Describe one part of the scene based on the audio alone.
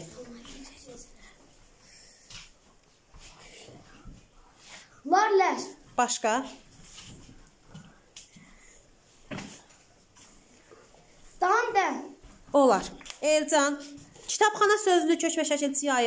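A young boy speaks with animation close by.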